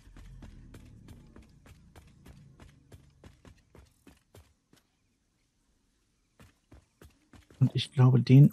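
Footsteps tread steadily on hard concrete.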